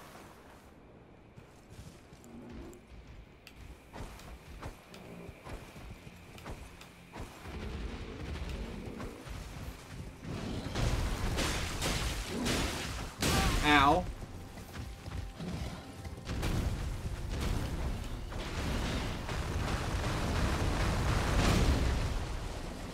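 Horse hooves gallop over the ground.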